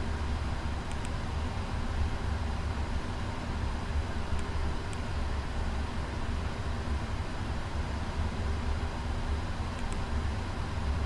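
Cockpit buttons click now and then.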